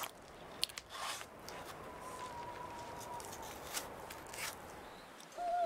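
A knife cuts and tears through an animal carcass.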